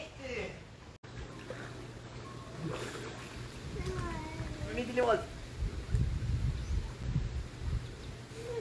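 Water splashes as swimmers move in a pool.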